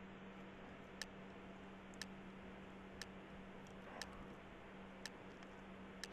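Short game beeps tick once a second as a countdown.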